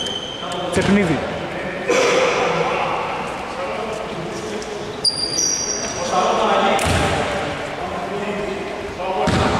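Men call out to each other in a large echoing gym.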